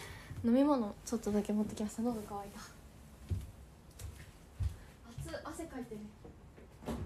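A young girl speaks in a high voice close by.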